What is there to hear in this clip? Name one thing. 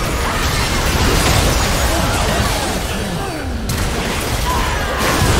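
Game combat sound effects of spells and blasts crackle and boom rapidly.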